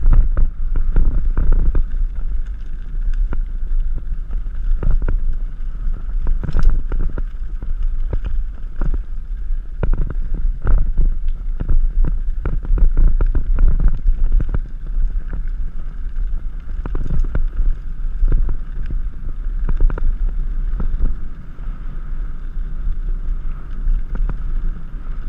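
Bike tyres crunch and rattle over a gravel trail.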